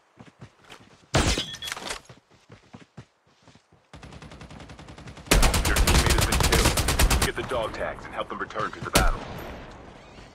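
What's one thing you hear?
Footsteps run over dirt.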